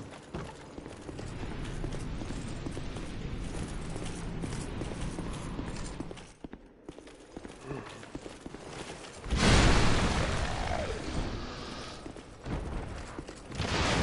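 Heavy armoured footsteps crunch through snow and then clank on stone.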